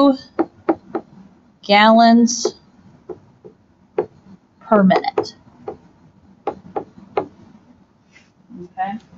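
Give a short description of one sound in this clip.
A stylus taps and scratches on a tablet surface.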